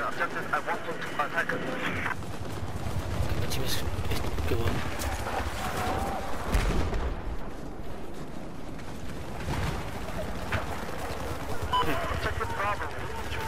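Footsteps crunch quickly over rough ground.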